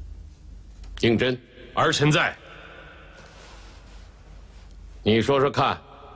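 An elderly man speaks slowly and gravely, close by.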